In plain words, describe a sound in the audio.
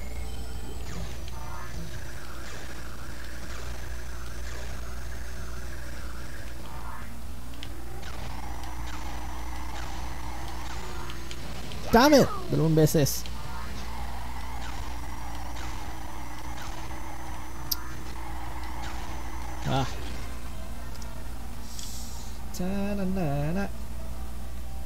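A racing game's engines hum steadily.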